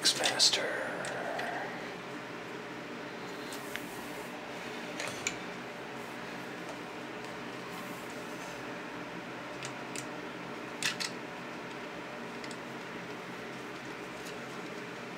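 Plastic toy parts click and snap as hands move them.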